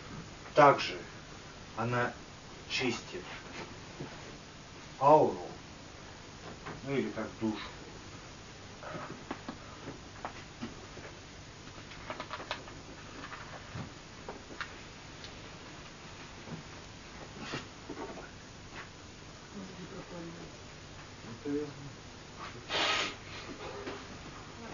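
A man speaks with animation in a small room, heard slightly distant.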